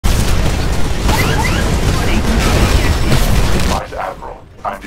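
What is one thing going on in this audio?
Heavy gunfire and explosions roar in a loud blast of noise.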